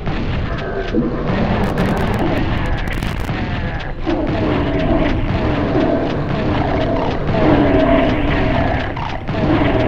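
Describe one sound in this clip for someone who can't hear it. Shotgun blasts fire again and again.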